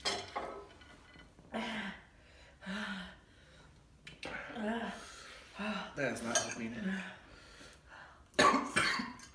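A young woman groans and exclaims in discomfort close by.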